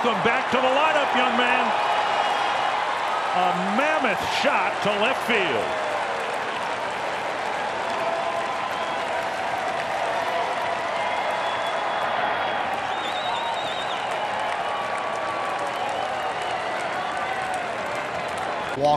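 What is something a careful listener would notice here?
A large crowd murmurs and cheers in an open stadium.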